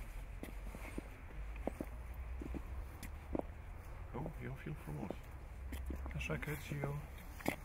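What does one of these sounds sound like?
Footsteps crunch softly on a path.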